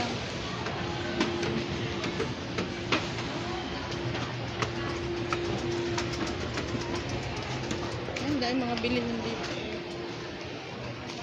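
An escalator hums steadily.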